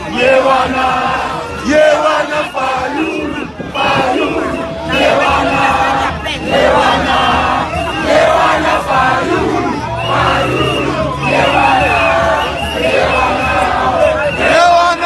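A crowd of people cheers and shouts.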